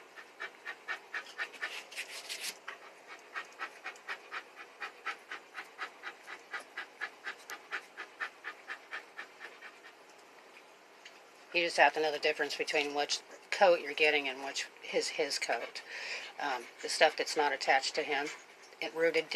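A hand rubs a dog's fur.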